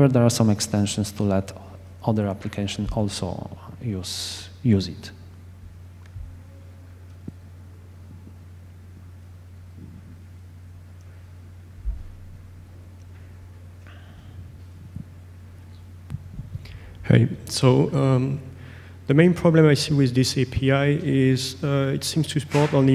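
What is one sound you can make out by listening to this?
A young man speaks calmly into a microphone through loudspeakers in a large echoing hall.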